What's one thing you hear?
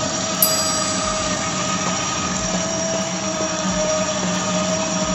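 A small electric motor whines steadily.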